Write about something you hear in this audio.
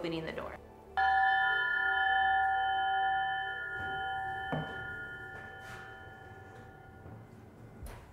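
A metal triangle is struck and rings out, slowly fading.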